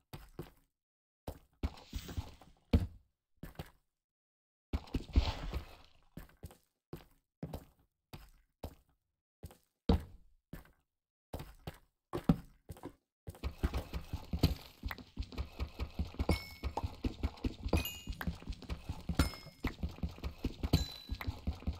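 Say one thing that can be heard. Footsteps tread quickly on stone.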